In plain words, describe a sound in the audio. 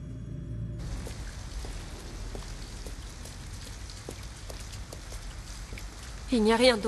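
Footsteps tap steadily on wet pavement.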